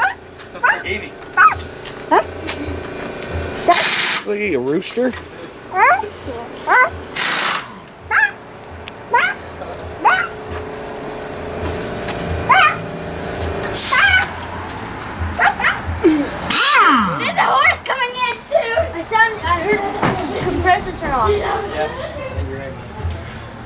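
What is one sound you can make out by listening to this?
Teenage boys talk and laugh nearby outdoors.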